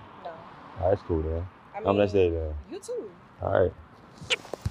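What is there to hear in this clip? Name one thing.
A young man talks nearby with animation.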